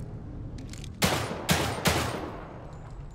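Gunshots crack loudly in quick succession.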